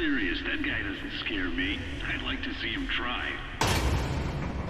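A man speaks calmly through a helmet radio.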